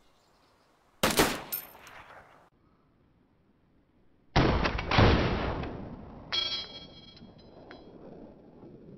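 A rifle fires two loud shots that echo and roll away into the distance.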